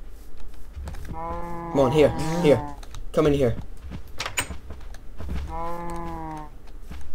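Cows moo loudly nearby.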